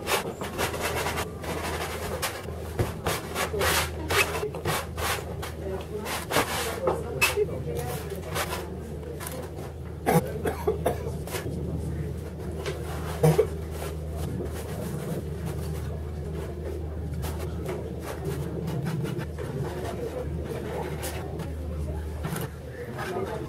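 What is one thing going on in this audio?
A brush scrapes and dabs against a canvas.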